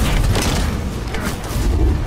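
Electric bolts crackle sharply.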